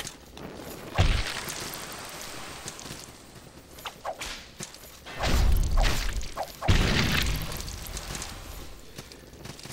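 A sword slashes and strikes in bursts of fighting.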